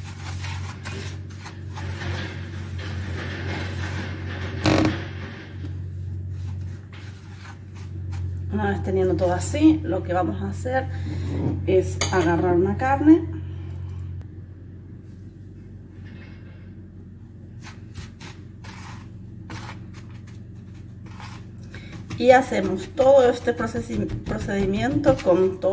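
Fingers rustle and press through dry breadcrumbs.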